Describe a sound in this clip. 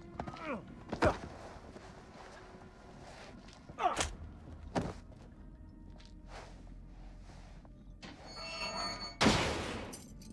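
Heavy blows land with sharp, loud thuds.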